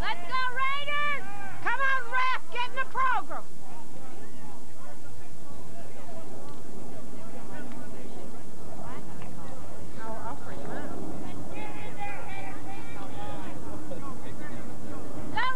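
Players shout and call out across an open outdoor field.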